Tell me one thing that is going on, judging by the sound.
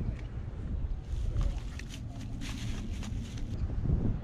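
Dry grass rustles close by.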